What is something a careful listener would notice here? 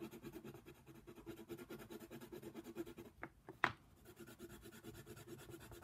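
A pencil scratches rapidly back and forth on paper.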